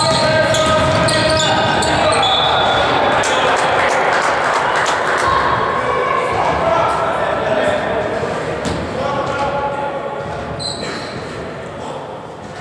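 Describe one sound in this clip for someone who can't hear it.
Basketball shoes squeak on a wooden court in an echoing sports hall.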